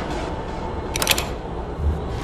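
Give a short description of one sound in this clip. A metal lock mechanism clicks and turns.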